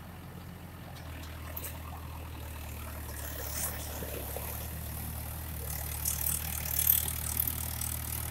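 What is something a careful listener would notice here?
A diesel tractor pulls away through wet mud.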